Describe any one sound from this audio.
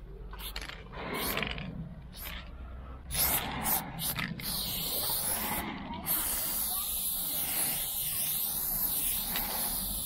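A spray can hisses in bursts, then steadily.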